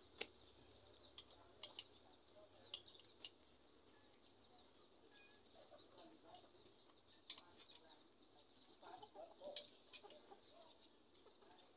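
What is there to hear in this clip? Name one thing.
Metal clinks and taps as a hand works at a metal exhaust pipe.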